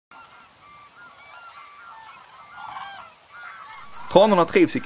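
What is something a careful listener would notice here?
Cranes call with trumpeting, rattling cries in the distance.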